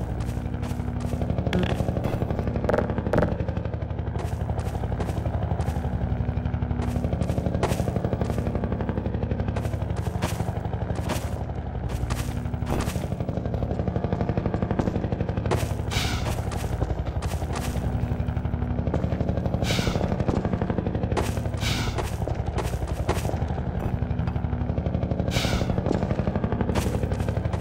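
Footsteps crunch over rubble and thud on wooden planks at a steady walking pace.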